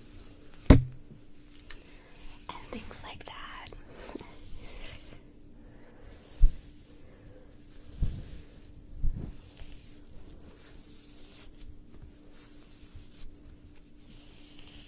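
A brush strokes through long hair with a soft swish.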